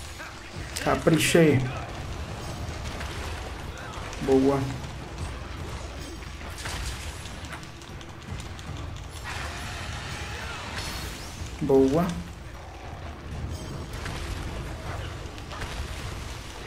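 Combat effects thud and whoosh throughout.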